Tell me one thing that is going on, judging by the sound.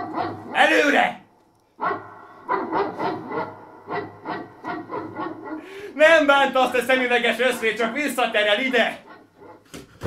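A young man speaks loudly and with animation nearby, in a small echoing room.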